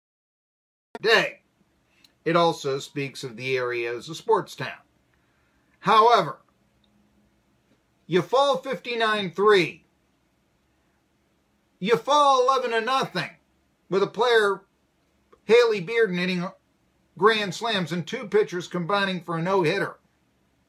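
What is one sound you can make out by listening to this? A middle-aged man speaks with animation, close into a microphone.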